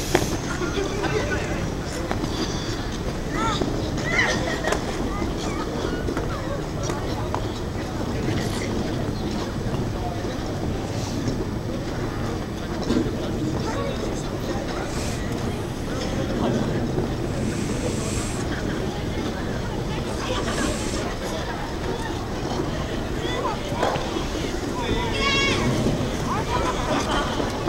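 Many people chatter and call out in the distance, outdoors.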